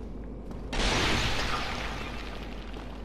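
Wooden boards crash and splinter loudly.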